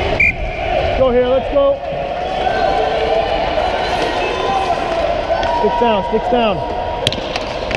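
Children shout in a large echoing hall.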